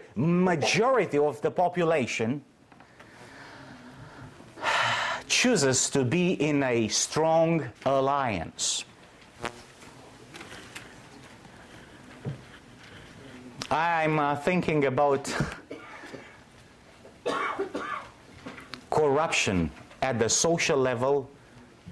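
A middle-aged man speaks with animation into a microphone, in pauses.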